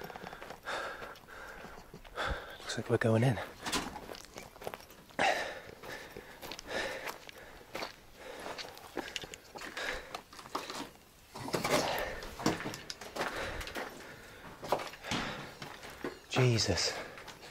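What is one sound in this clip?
Footsteps crunch on rubble and gravel.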